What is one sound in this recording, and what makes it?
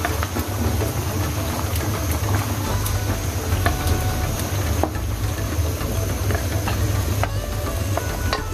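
Liquid bubbles and simmers in a pan.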